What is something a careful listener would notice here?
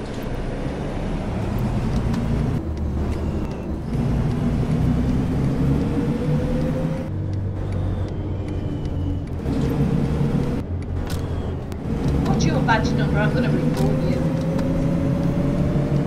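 A bus engine hums and rises in pitch as it speeds up.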